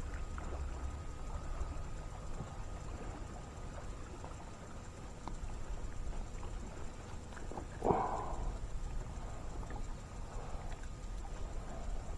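Water laps gently against the hull of a small boat.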